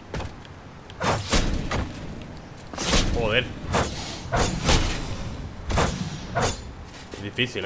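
Sword slashes whoosh and clang in quick succession.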